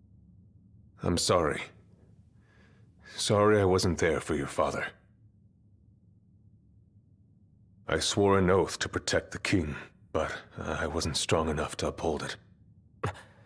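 A man speaks slowly in a low, regretful voice.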